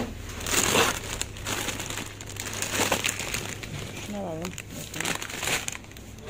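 Crisp packets crinkle and rustle as they are handled.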